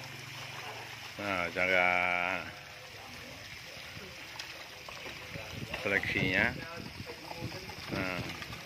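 Water splashes softly as hands stir fish in a tub.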